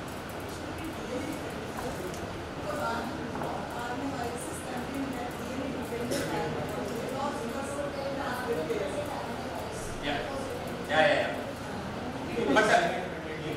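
A man speaks steadily into a microphone, heard over loudspeakers in an echoing room.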